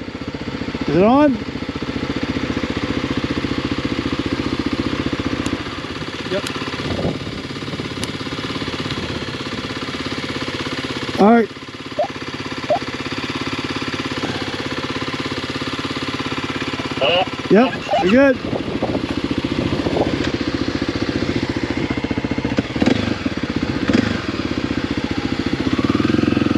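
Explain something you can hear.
A motorcycle engine idles steadily nearby.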